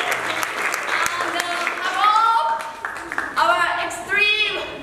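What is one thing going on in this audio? A woman sings out loudly and expressively in an echoing hall.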